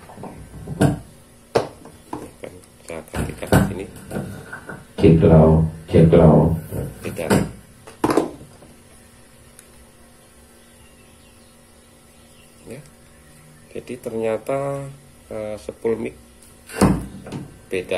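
Microphones knock and clink as they are picked up and set down on a hard surface.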